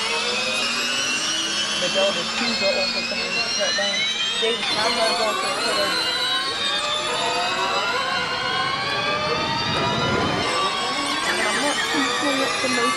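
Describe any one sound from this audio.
Racing car engines whine at high revs, shifting gears up and down.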